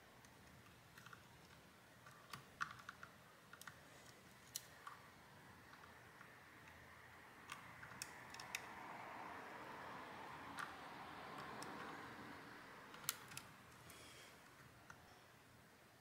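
Small plastic parts click and tap as fingers work on a device.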